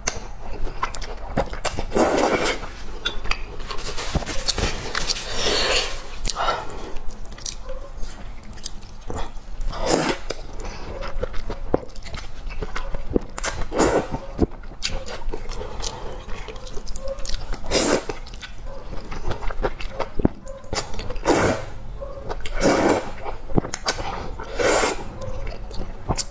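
A young woman slurps noodles loudly, close to a microphone.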